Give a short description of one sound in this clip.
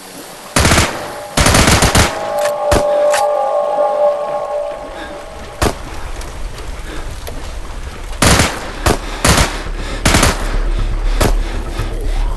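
A submachine gun fires in short, loud bursts.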